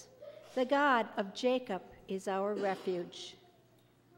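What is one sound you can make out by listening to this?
An older woman reads out calmly through a microphone.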